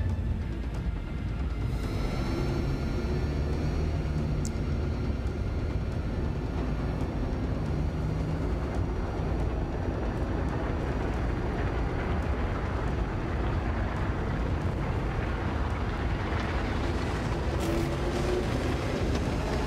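A spacecraft engine rumbles steadily.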